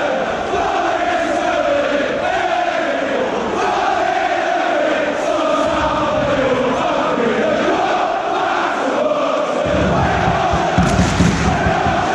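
A large crowd of men sings and chants loudly together in an open stadium.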